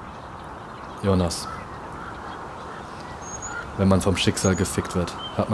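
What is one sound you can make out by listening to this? A young man speaks quietly and calmly close by.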